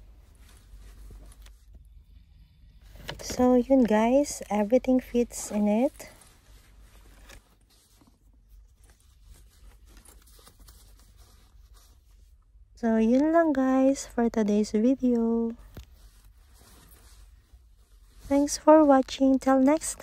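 Fabric rustles softly as hands rummage through a bag.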